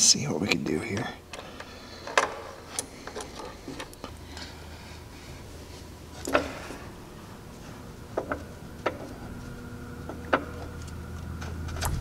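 Metal tools clink and knock against metal parts.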